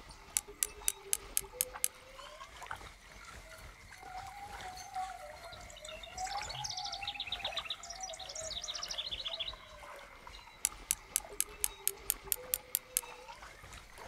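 A fishing reel clicks rapidly as line is wound in.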